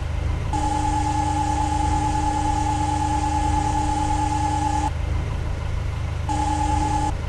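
A loader's hydraulics whine as its bucket lowers.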